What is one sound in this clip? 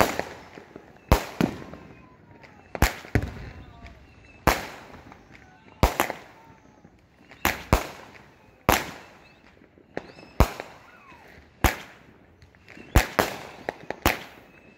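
Fireworks burst with loud bangs that echo away.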